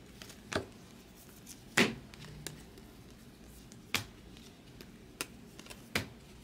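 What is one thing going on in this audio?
Trading cards shuffle and slap against each other in a stack.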